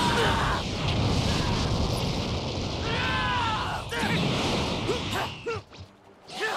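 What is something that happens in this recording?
An energy blast bursts with a loud roaring rush.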